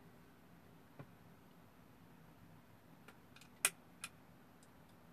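A switch clicks on an electronic device.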